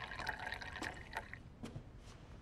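Tea pours from a teapot into a cup.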